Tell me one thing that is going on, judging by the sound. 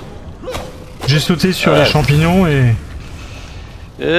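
A deep magical burst whooshes and crackles.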